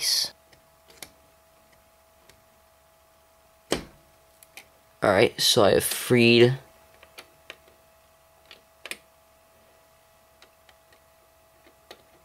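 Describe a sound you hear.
Fingers click and tap on a small plastic part.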